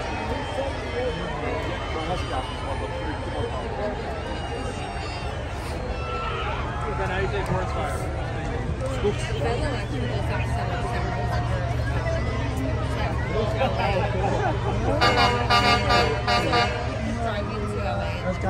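A crowd of adults and children chatters and calls out nearby, outdoors.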